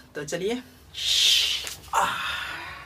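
A young man exclaims loudly.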